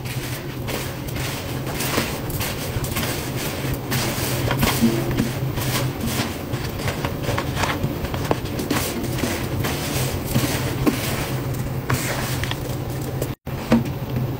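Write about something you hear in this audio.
A gloved hand scrubs a wet cloth against a metal sink with rough, rustling swishes.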